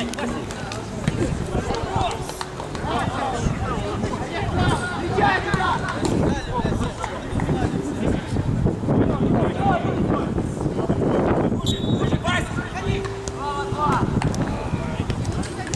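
Men shout and call to each other across an open field outdoors.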